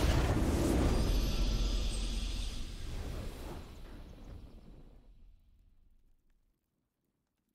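A game's victory fanfare rings out and slowly fades away.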